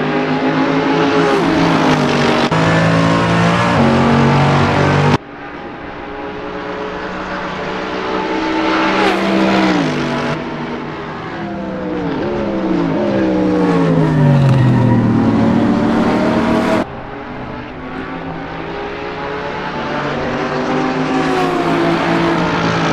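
A racing car engine roars at high revs, rising and falling as it shifts gears.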